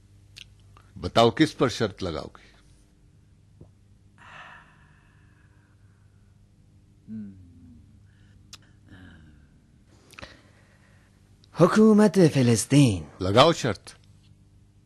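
A man answers calmly, close by.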